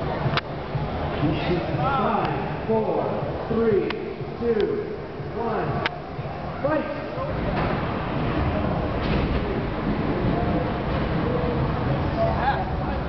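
A crowd of people chatters and shouts in a large echoing hall.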